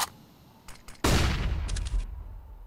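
A sniper rifle fires a single loud, sharp shot that echoes briefly.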